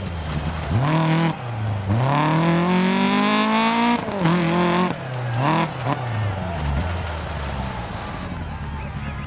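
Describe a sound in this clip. A rally car engine revs hard, its pitch rising and falling through gear changes.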